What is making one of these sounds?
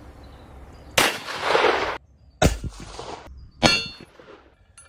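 A handgun fires loud, sharp shots.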